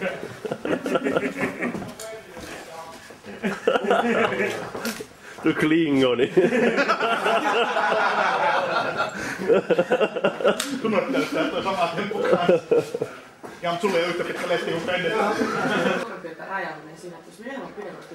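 Several men talk and joke with animation close by.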